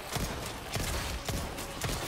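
A gun fires a few shots.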